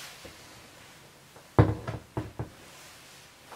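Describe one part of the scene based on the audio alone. A bag knocks and thumps as it is handled.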